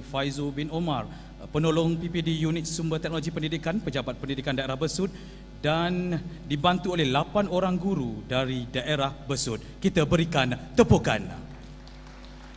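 A man speaks into a microphone with a steady, formal tone.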